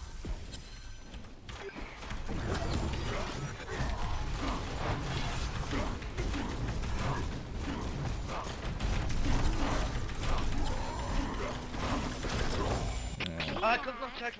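Video game battle effects crackle and whoosh.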